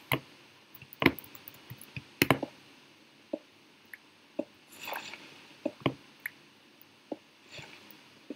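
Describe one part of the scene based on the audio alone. A pickaxe chips at stone with quick, repeated knocks.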